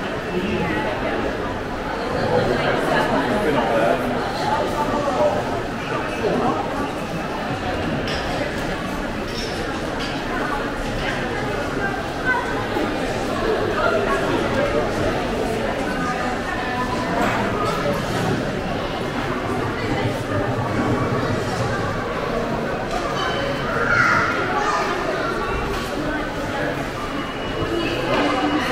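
Many people chatter in a large echoing hall.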